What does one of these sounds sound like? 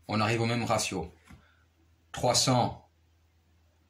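A man speaks close to the microphone with animation.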